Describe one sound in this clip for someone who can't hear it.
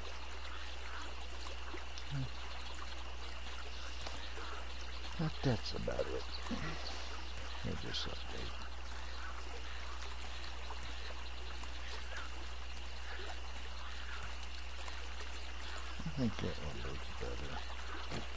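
Footsteps tread on grass at a steady walking pace.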